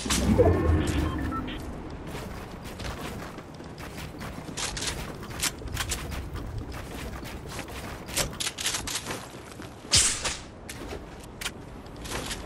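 Game building pieces snap into place with sharp clacks.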